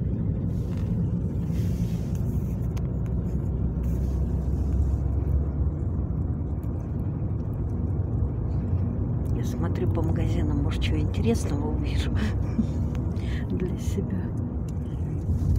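A car engine hums low and steady from inside a moving car.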